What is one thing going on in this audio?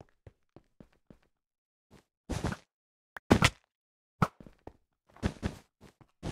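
Footsteps tap lightly on stone blocks.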